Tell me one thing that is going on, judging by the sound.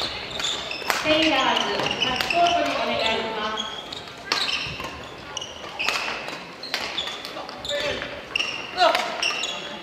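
Young players call out and shout across the hall.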